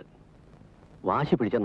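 A middle-aged woman speaks, close by.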